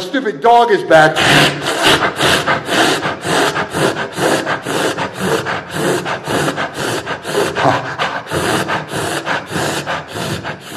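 People clap their hands quickly and steadily in a room.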